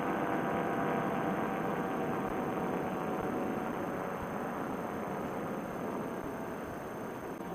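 An engine drones steadily close by, then quiets.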